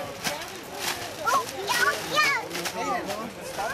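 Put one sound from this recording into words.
A small child speaks excitedly close by.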